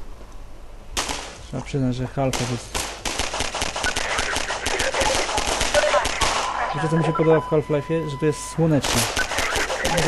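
Pistol shots ring out in rapid bursts.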